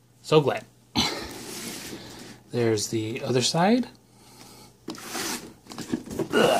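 A cardboard box scrapes and rubs as hands turn it over on a table.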